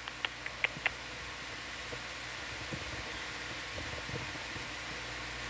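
An underwater vehicle hums and hisses steadily.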